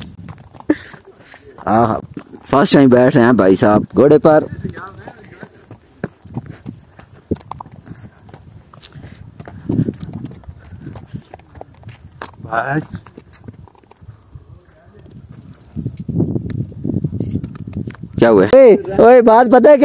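A horse's hooves clop on a dirt trail.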